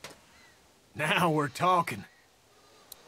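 A man speaks with excitement, close by.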